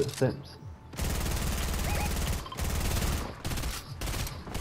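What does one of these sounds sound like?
Gunfire cracks in rapid bursts.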